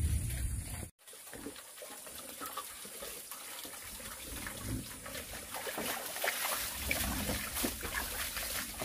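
Water trickles steadily from a pipe into a bucket.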